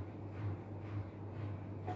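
A woman gulps a drink.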